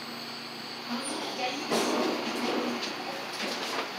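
Elevator doors slide open with a low rumble.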